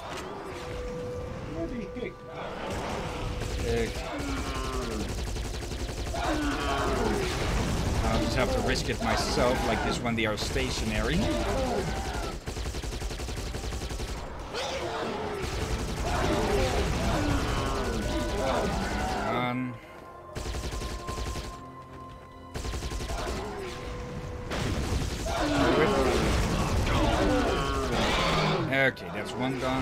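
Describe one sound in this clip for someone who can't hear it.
A man talks with animation into a nearby microphone.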